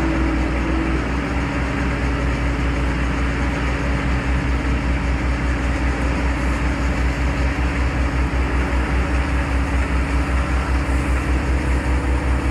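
A semi truck's diesel engine rumbles and throbs steadily close by as the truck rolls slowly away.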